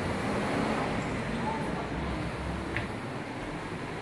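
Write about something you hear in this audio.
Lift doors slide open.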